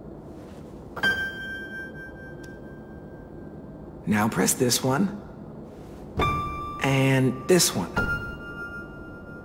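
Piano notes ring out one after another.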